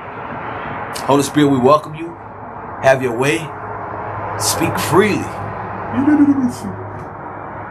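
A man speaks expressively close by, with a rising and falling voice.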